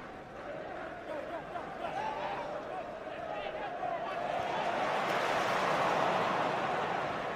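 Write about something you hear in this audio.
A large stadium crowd chants and sings, growing louder.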